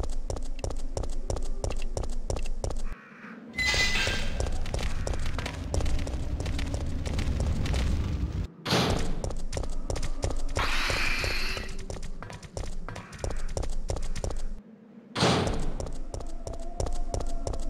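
Footsteps tap quickly and steadily on hard ground.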